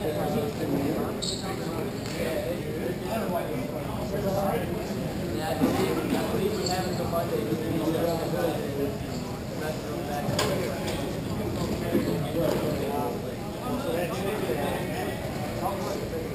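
Young men shout and call out to one another in a large echoing hall.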